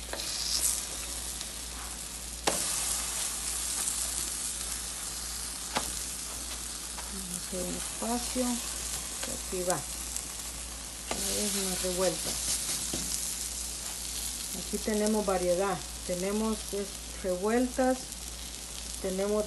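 Food sizzles steadily on a hot griddle.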